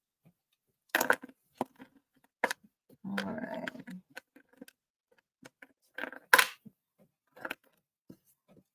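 Small glass beads click and tap against a hard surface.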